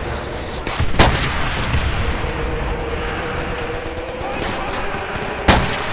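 A sniper rifle fires a sharp, loud shot.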